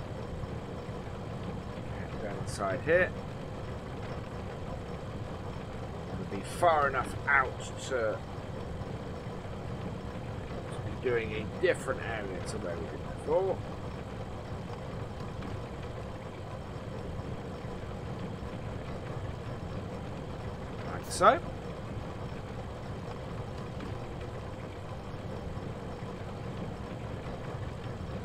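A tractor engine rumbles steadily from inside the cab.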